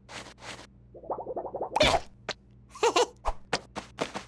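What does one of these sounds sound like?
A cartoon chick chirps and cheeps playfully.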